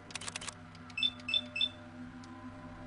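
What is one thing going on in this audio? Short electronic beeps chime three times.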